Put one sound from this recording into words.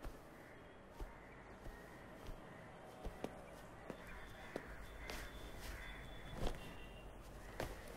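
Clothes rustle as a man packs a bag.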